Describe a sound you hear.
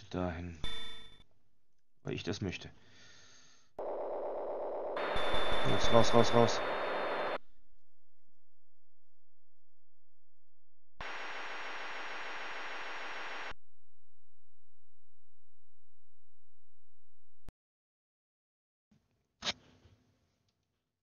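Harsh electronic game sounds beep and buzz in short bursts.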